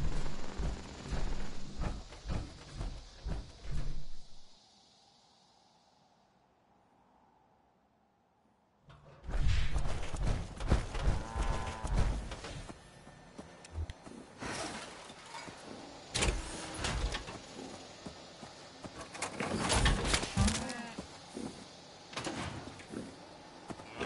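Heavy armoured footsteps thud on the ground.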